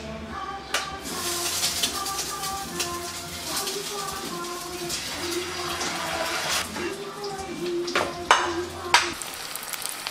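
An egg sizzles and spits in a hot frying pan.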